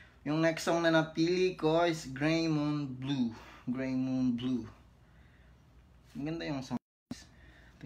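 A young man sings close to a phone microphone.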